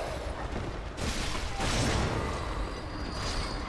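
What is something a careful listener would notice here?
A blade slashes and strikes a creature.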